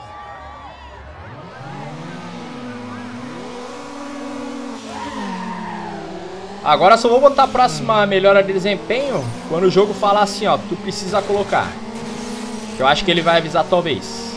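Car engines rev and roar, rising and falling in pitch.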